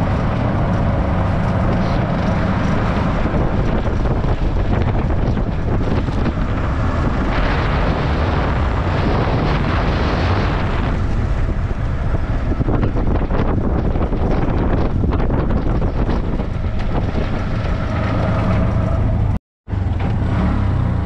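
A small motor tricycle engine drones steadily up close.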